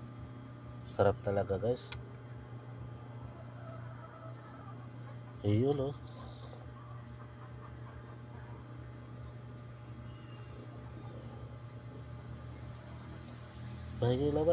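A young man speaks briefly with animation, close by.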